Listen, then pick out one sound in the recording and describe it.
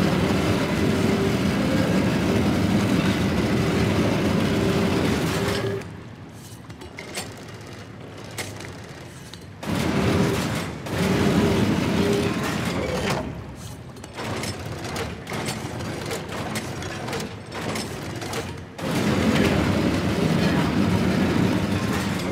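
Heavy machinery grinds and rumbles, echoing in a large hall.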